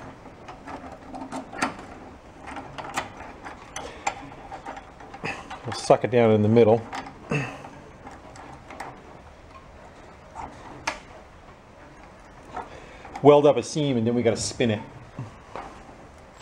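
Metal parts click and scrape as they are handled.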